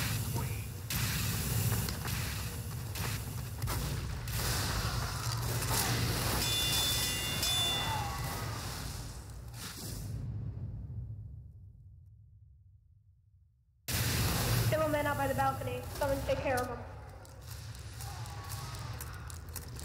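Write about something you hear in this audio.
Gunfire and explosions crack and boom in a video game.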